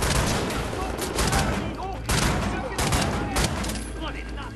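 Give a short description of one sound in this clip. Heavy guns fire in loud rapid bursts.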